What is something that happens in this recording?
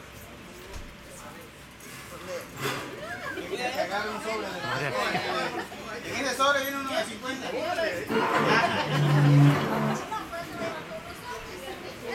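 Several adults and children chatter and talk at once nearby.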